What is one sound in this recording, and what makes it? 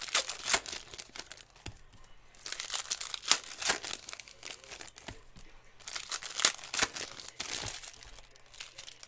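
Plastic card pack wrappers crinkle and tear in hands.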